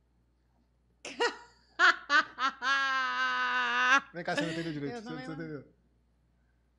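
A woman laughs loudly and shrieks close to a microphone.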